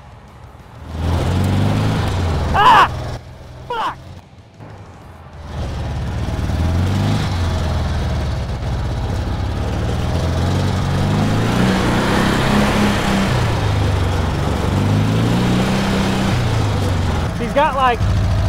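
A dune buggy engine revs and roars.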